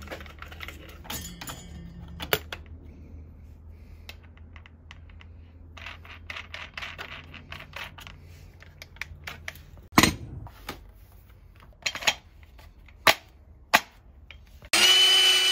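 Metal parts click and clack as a grinding disc is fitted.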